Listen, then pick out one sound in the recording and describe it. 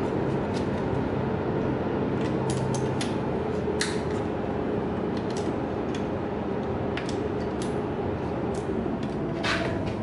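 Metal tools click and tap against an engine.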